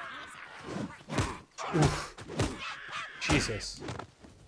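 Blades clash and thud in a fight.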